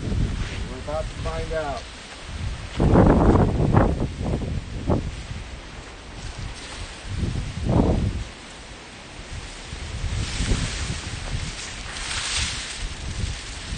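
Tall grass rustles as a person brushes through it.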